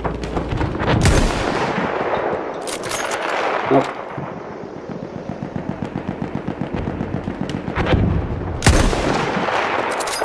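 A rifle fires single loud shots that echo and fade.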